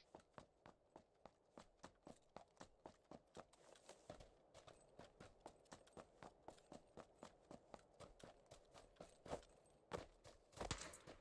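Quick, even footsteps thud on the ground.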